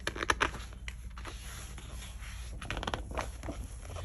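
A book page is turned with a papery rustle.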